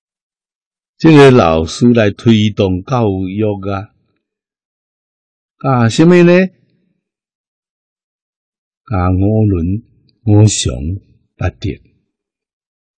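An elderly man speaks calmly and slowly into a close microphone, with long pauses.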